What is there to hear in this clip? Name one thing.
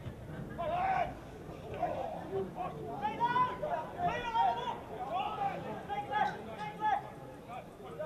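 Men shout and cheer excitedly outdoors.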